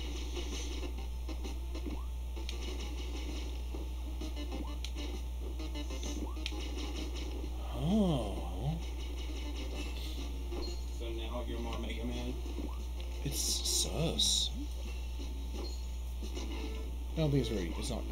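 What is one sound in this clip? Chiptune game music plays steadily.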